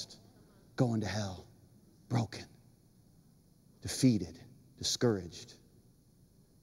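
A man speaks with animation into a microphone, in short emphatic bursts.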